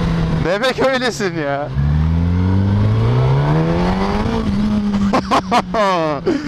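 A motorcycle engine hums and rises in pitch as it speeds up.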